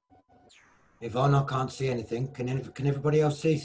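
A man speaks loudly and with animation through an online call.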